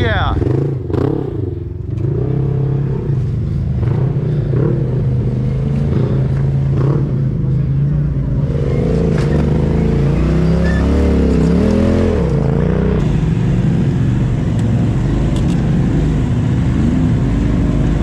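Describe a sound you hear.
An off-road buggy's engine roars and revs up and down close by.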